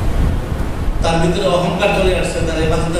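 A man speaks into a microphone, heard through a loudspeaker.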